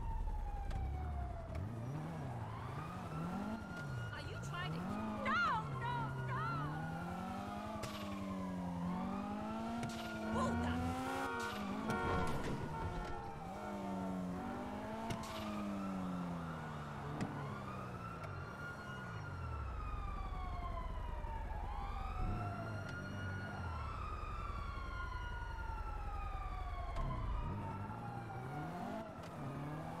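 A car engine revs up and down as it speeds along.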